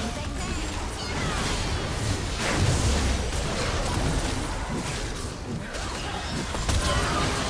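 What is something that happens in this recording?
Game spell effects crackle and boom in a fast battle.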